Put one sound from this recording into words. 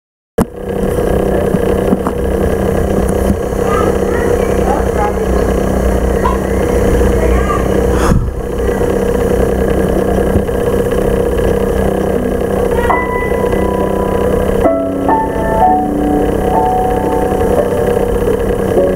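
An electric fan hums steadily close by.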